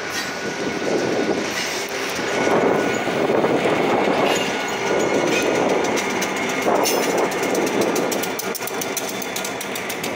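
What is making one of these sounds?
Train cars rumble and clatter along the track close by.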